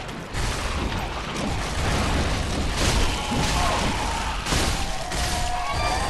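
Sword blows strike a creature with heavy impacts.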